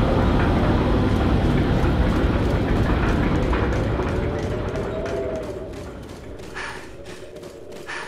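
High-heeled boots click in steady footsteps.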